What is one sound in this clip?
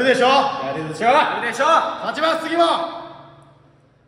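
Young men shout together with excitement, close by.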